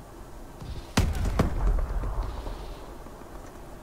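An explosion booms and rumbles away.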